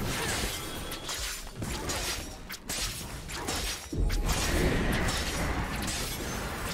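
Spell effects crackle and whoosh as characters fight.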